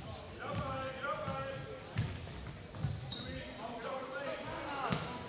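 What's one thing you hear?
A crowd of spectators murmurs in a large echoing gym.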